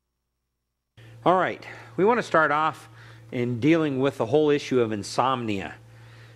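A middle-aged man lectures calmly through a microphone.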